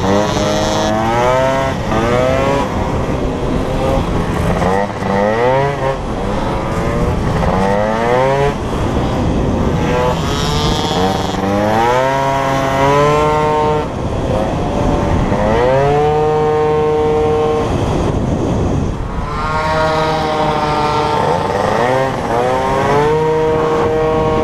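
A motorcycle engine revs hard, rising and falling in pitch with each gear change.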